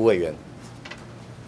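A man speaks briefly through a microphone.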